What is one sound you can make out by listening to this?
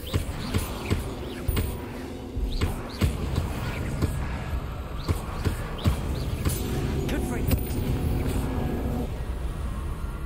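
Magic spells crack and zap in rapid bursts.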